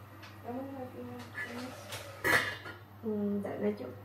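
A pot clatters on a stove.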